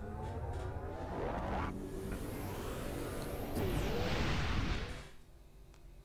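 A spaceship's engine roars and whooshes away at great speed.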